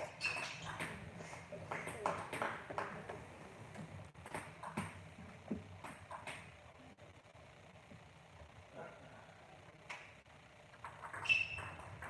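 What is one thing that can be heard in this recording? A ping-pong ball clicks back and forth on paddles and a table in an echoing hall.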